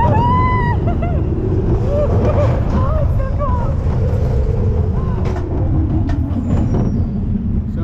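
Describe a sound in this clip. Wind roars loudly against a microphone.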